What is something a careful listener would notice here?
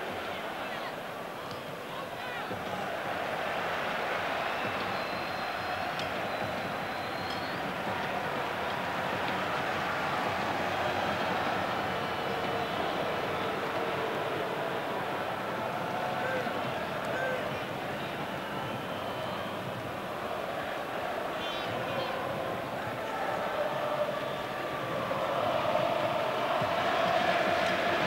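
A large stadium crowd murmurs and cheers steadily, swelling louder near the end.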